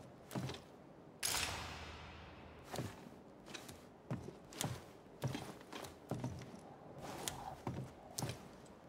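Footsteps shuffle slowly, step by step.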